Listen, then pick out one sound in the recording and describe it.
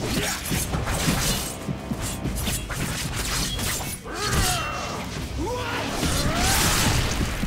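Blades swish and slash through the air.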